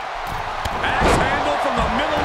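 A body slams hard onto the mat.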